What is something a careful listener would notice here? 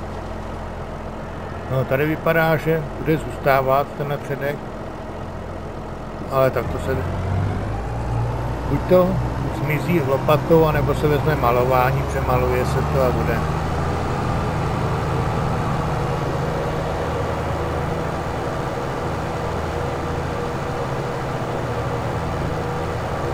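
A tractor engine drones steadily, growing louder as the tractor pulls away.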